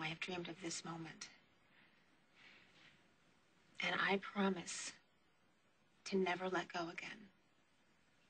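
A woman speaks softly and earnestly, close by.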